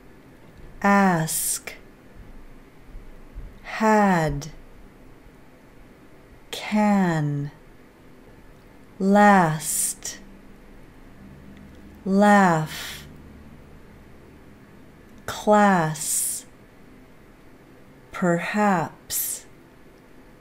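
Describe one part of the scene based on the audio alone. A woman says single words slowly and clearly, one at a time, close to a microphone.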